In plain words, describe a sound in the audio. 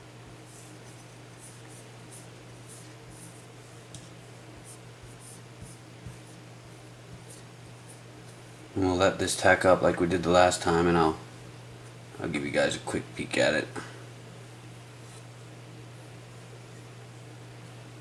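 Fingers rub oil into a wooden gunstock.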